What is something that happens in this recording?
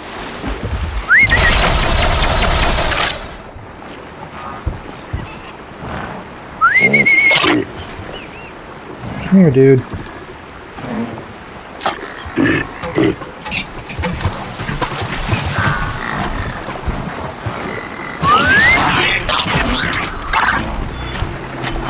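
Mechanical creatures whir and screech nearby.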